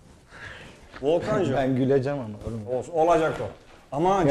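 A young man reads out with animation, close by.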